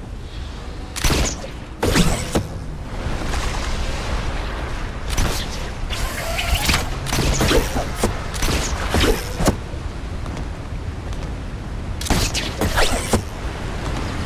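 Gunshots ring out in short, sharp bursts.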